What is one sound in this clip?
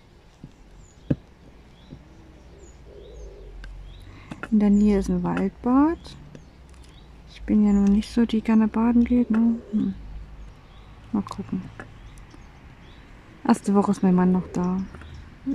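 A plastic pen taps and clicks softly on a textured surface.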